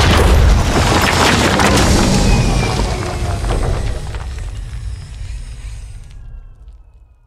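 Heavy rock crumbles and rumbles as a structure collapses.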